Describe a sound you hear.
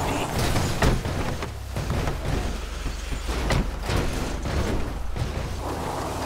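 A car thumps and rattles over rough ground.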